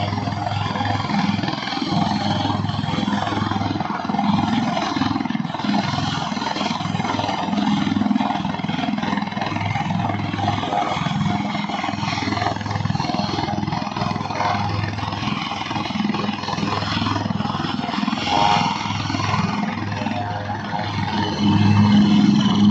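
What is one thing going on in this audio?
A helicopter's engine roars loudly nearby.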